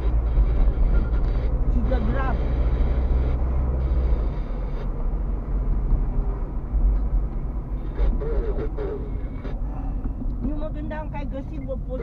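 A car engine hums steadily with a low rumble from inside the car as it drives.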